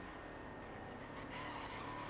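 A car scrapes against a barrier.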